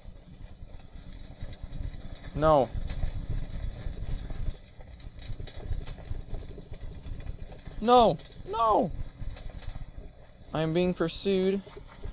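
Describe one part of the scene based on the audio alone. Fire crackles steadily.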